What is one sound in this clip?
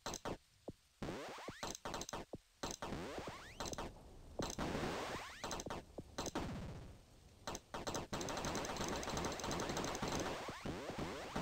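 Electronic pinball bumpers ding and chime as a ball bounces around.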